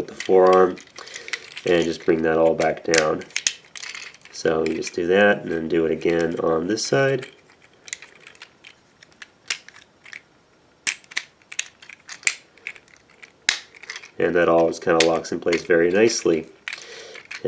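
Plastic toy parts click and snap as they are twisted into place.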